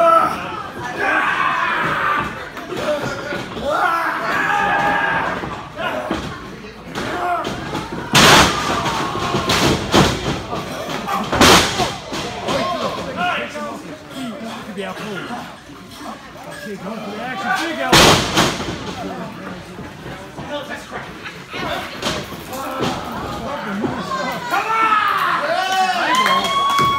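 A crowd cheers and shouts in an echoing hall.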